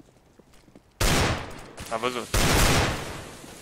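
Gunshots fire loudly in quick bursts.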